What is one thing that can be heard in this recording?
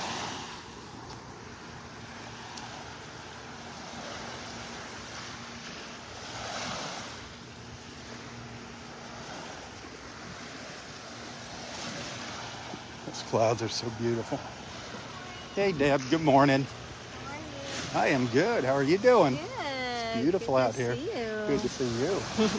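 Small waves wash gently against the shore.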